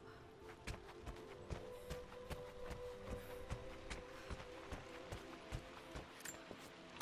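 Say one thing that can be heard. Quick footsteps run over a wooden floor.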